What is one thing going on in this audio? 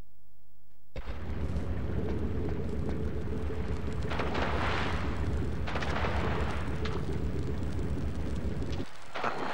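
Flames roar loudly and steadily.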